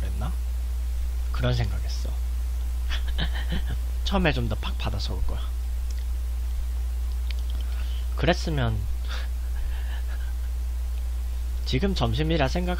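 A young man talks casually and laughs close to a microphone.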